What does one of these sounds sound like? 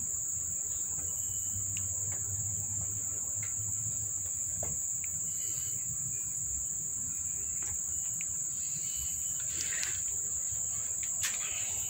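Kittens squirm and rustle on a cloth.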